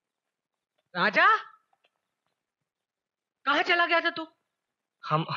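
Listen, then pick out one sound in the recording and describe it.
A middle-aged woman speaks in a worried voice, close by.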